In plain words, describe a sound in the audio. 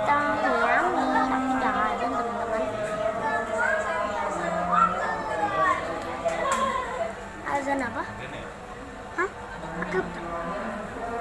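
A young girl talks close by in a small voice.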